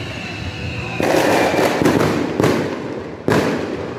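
Fireworks crackle after bursting.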